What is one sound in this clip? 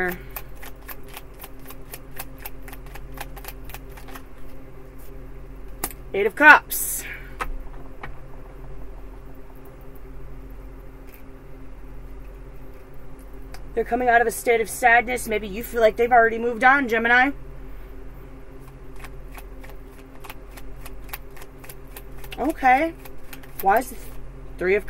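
Playing cards flick and riffle as they are shuffled.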